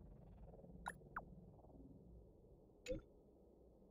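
A short chat notification blip sounds as new messages arrive.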